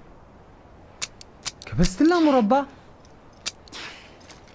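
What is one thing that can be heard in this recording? A revolver clicks.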